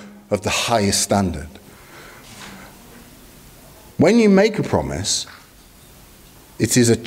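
A middle-aged man speaks with animation into a microphone, with pauses between phrases.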